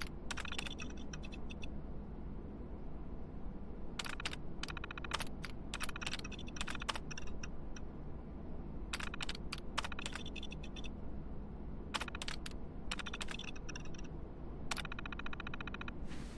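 Terminal text prints out with rapid electronic clicking beeps.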